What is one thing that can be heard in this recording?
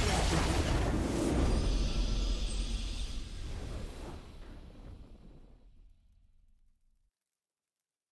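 A triumphant game victory fanfare swells and slowly fades away.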